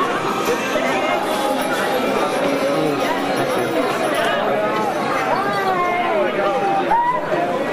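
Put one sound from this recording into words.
A crowd of men and women chatter loudly all around in an echoing hall.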